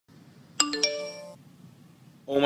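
A phone plays a short chiming message alert.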